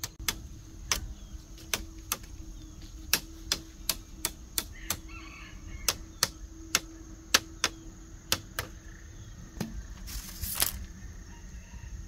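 A knife scrapes and splits bamboo.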